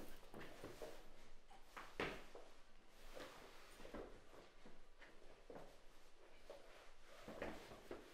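Blows and bodies thud during a scuffle.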